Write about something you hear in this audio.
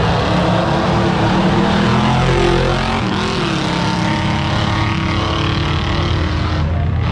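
A crowd cheers and shouts along the roadside.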